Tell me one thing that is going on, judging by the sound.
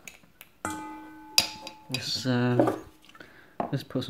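A small metal tin is set down on a table with a light clink.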